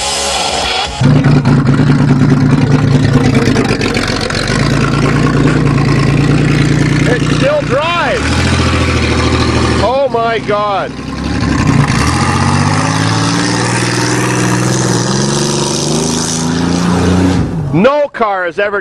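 A car engine revs loudly and roars.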